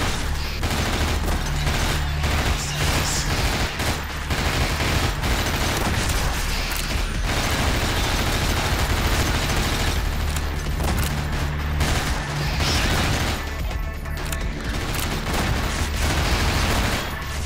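Rapid gunfire rattles loudly and fast.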